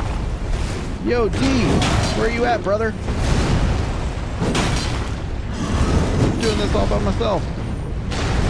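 A young man speaks into a close microphone.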